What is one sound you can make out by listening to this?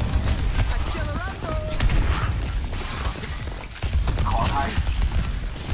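Game sound effects chime and whir.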